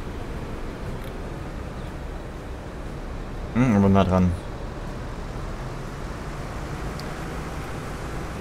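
A bus engine hums as the bus drives slowly past.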